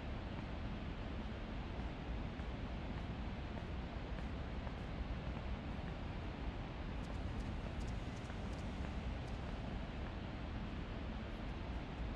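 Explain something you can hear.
A small submarine's motor hums steadily underwater.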